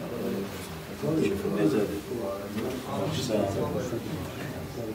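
A middle-aged man speaks a greeting close by.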